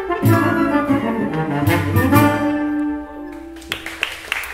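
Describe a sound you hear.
A brass section of trumpets plays a lively tune.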